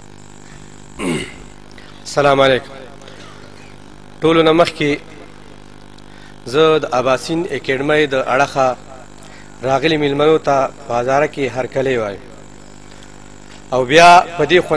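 A man speaks through a microphone in a loud, echoing hall, reciting with feeling in short bursts.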